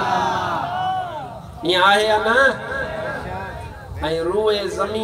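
A man chants melodiously through a loudspeaker, echoing outdoors.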